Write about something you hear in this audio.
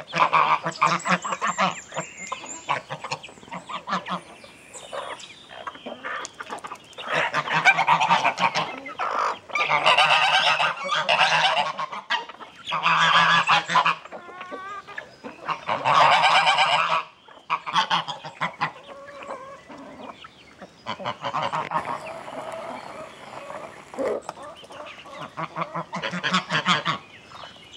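Geese honk loudly in bursts close by.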